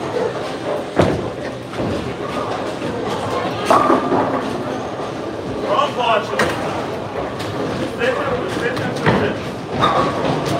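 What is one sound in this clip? Bowling balls roll down lanes and crash into pins, in a large echoing hall.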